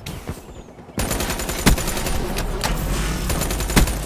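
A gun fires.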